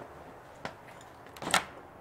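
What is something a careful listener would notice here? A metal door knob rattles and clicks.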